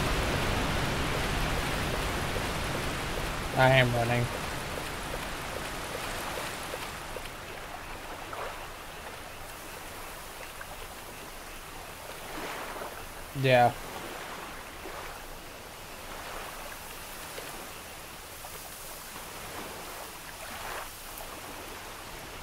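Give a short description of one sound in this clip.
Water splashes as footsteps wade through it.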